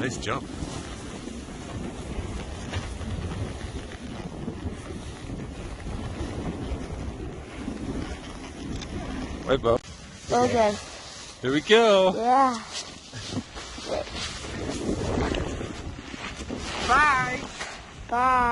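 A snowboard scrapes across snow.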